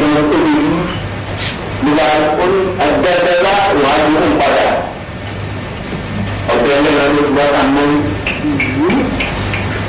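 A second man answers calmly.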